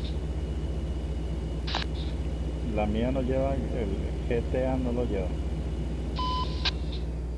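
A truck engine drones steadily.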